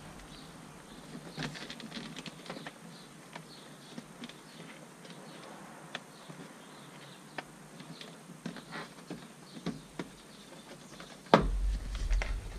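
Plastic clips click and knock as a car door panel is pried loose.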